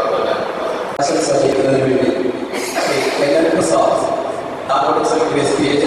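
A middle-aged man speaks calmly through a handheld microphone and loudspeakers.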